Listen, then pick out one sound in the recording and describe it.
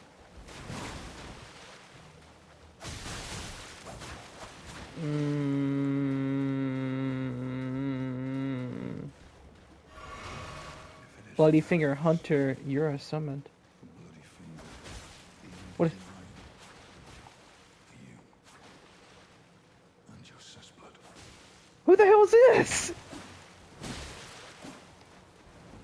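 Water splashes as figures run through shallow water.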